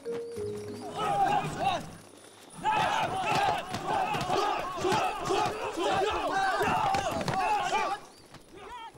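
A group of young men shout together in rhythm.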